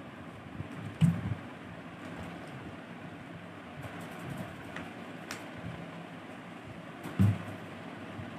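A plastic bottle crinkles and thumps in a man's hand.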